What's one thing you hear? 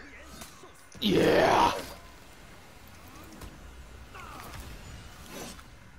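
Blades clash and clang in a fight.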